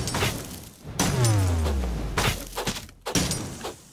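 A falling tone sweeps down as a game character dies.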